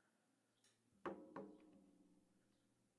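A stone is set down on a wooden table with a soft knock.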